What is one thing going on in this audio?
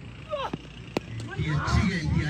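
A cricket bat cracks against a ball.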